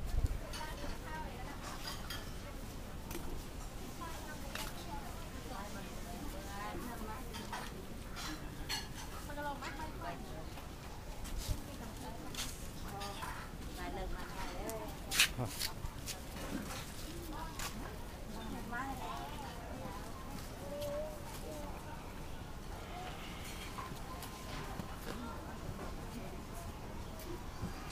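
A lively crowd chatters all around.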